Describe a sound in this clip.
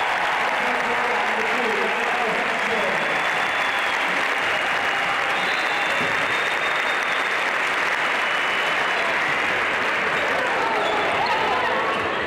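A large crowd cheers and shouts steadily in an echoing arena.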